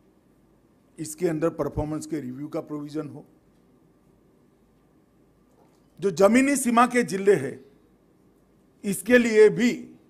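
A middle-aged man speaks forcefully into a microphone over loudspeakers, pausing between phrases.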